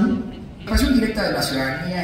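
A man speaks through a loudspeaker in a large hall.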